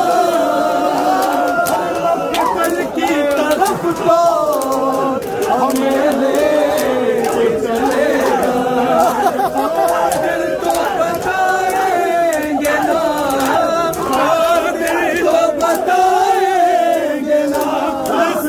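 Men beat their chests with their hands in a steady rhythm.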